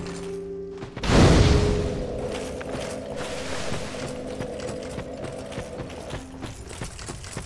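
A fire bursts alight with a loud whoosh and then crackles.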